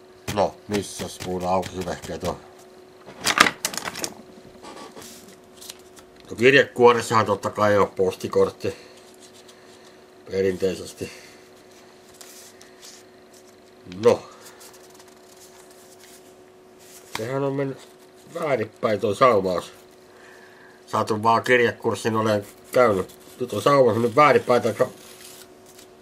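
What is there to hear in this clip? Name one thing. A man talks calmly and close by, in short bursts with pauses.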